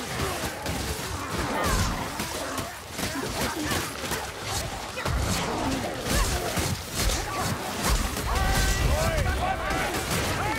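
A sword slashes and thuds into enemies.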